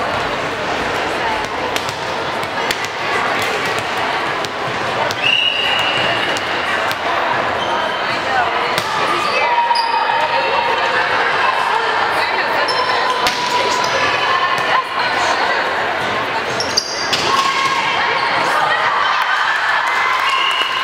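Young women players call out and shout across the court.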